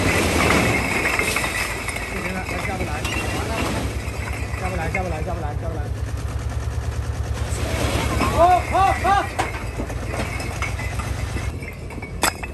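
A load of bricks slides and rumbles out of a tipping truck bed.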